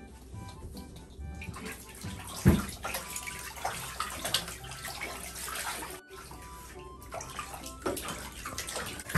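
Water splashes and ripples as ducks paddle in a bathtub.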